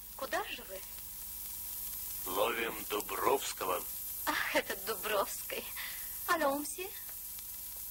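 A man speaks sternly.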